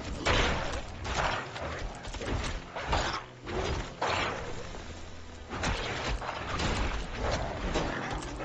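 Weapon blows and spell bursts hit monsters again and again in a game.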